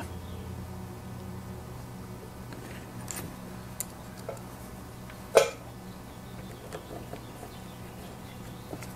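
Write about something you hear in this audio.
Small metal and plastic parts click and clatter as hands handle them.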